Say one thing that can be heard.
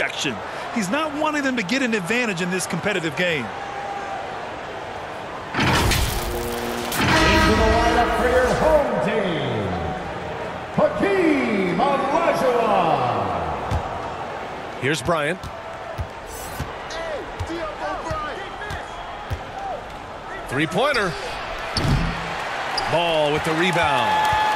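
A crowd murmurs and cheers in a large arena.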